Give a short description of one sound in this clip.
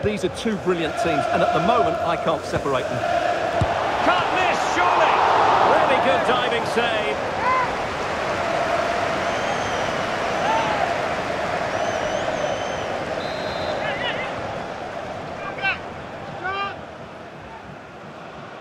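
A large stadium crowd roars and cheers, swelling loudly and then slowly fading.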